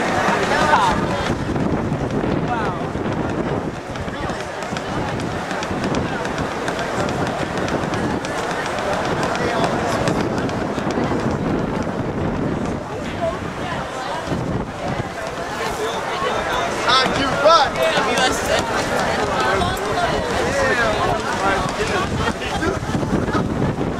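A crowd of men and women talks and murmurs all around outdoors.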